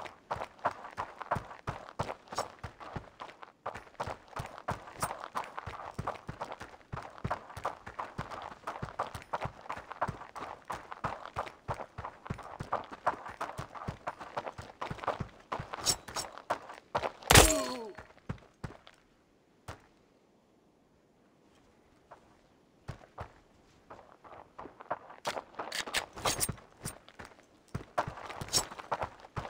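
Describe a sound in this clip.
Quick footsteps crunch on gravel.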